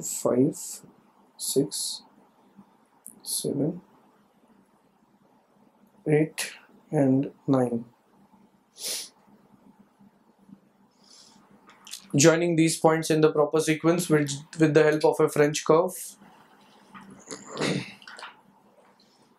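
A man speaks calmly into a microphone, explaining in short bursts.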